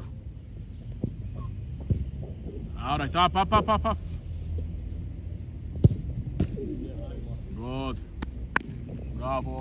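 A ball is kicked hard several times.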